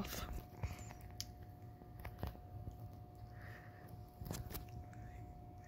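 A kitten laps and chews food.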